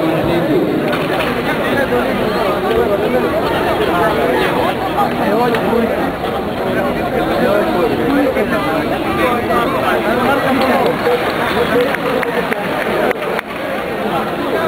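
A crowd murmurs in a large echoing indoor arena.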